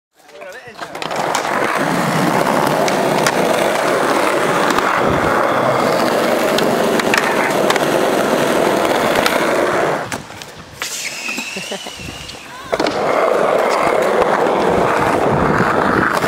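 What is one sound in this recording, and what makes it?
Skateboard wheels roll and rumble over concrete.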